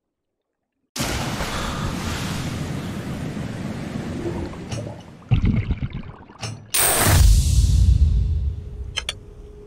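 Water splashes and bubbles loudly.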